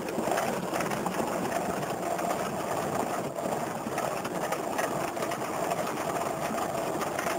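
A small propeller engine drones loudly and steadily.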